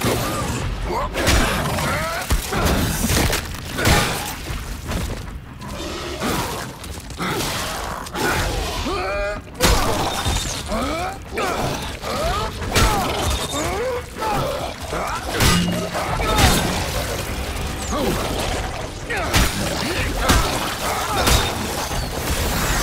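Heavy blows thud and smash in quick bursts.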